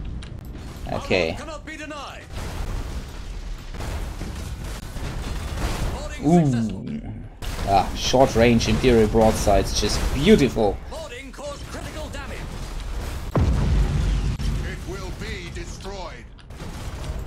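A man talks casually into a nearby microphone.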